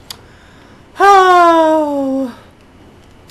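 A young man lets out a loud, falling sung cry.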